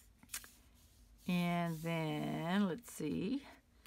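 Hands press and slide over paper on a mat.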